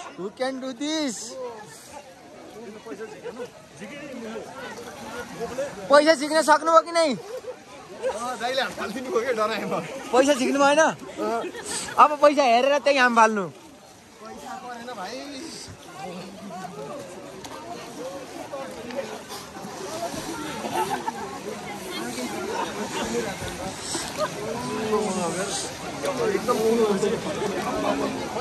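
Water splashes as people wade and bathe.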